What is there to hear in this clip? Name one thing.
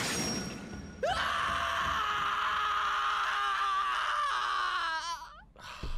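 A young man laughs hard into a close microphone.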